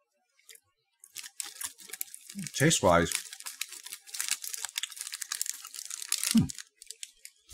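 Small objects rustle and crackle under a man's hands close by.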